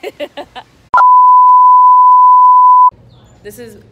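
A steady high test tone beeps loudly.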